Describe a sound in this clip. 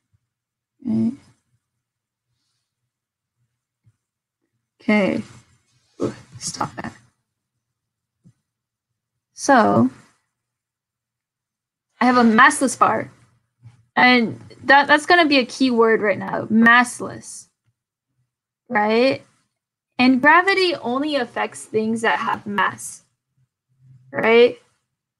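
A young woman talks calmly into a close microphone, pausing often.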